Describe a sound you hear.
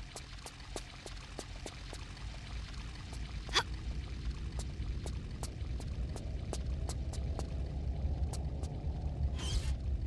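Footsteps patter quickly on stone floors.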